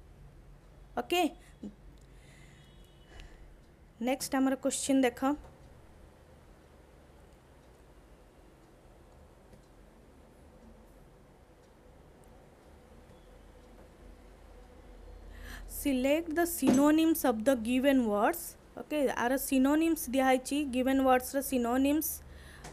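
A woman speaks calmly into a close microphone, in bursts with long pauses.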